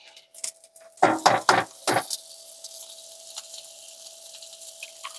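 Onions sizzle in a hot frying pan.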